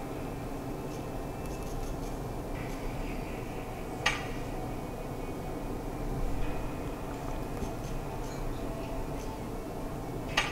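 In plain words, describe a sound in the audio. Fingertips tap lightly on a phone's touchscreen.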